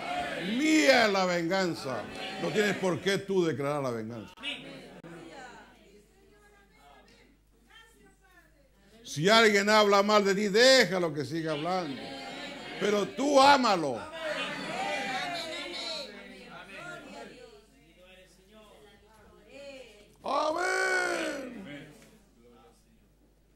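An elderly man preaches with animation into a microphone, his voice rising to shouts, in an echoing room.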